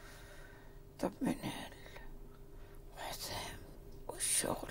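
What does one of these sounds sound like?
A woman moans and gasps weakly in pain, close by.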